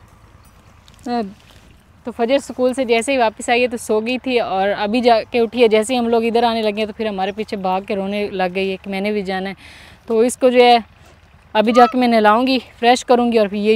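A young woman talks with animation close by, outdoors.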